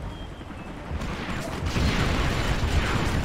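Tank guns fire in short bursts.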